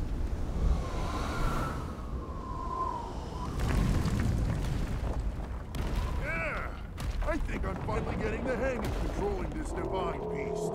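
A deep mechanical rumble rolls and groans throughout.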